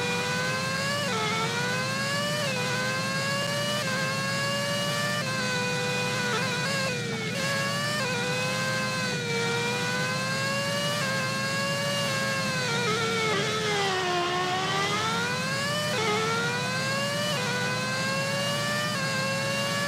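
A racing car engine whines at high pitch, rising through the gears and dropping when braking.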